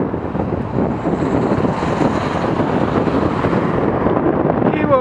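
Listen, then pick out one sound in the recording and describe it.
A car overtakes, passing close by.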